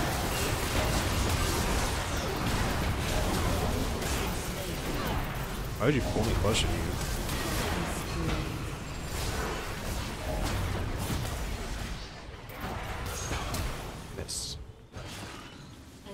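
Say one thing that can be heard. Spell effects whoosh, crackle and explode in a fast-paced game fight.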